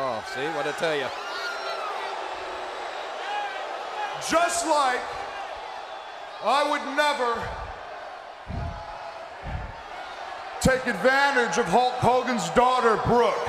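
A large crowd murmurs and cheers in the background.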